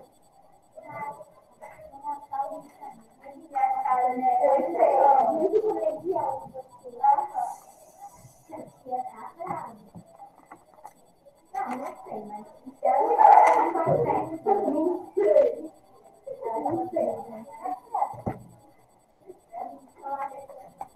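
A young woman talks calmly over an online call.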